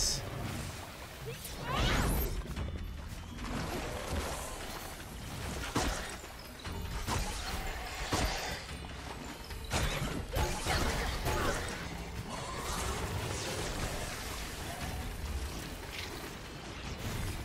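Sword strikes and impacts clash in a fight.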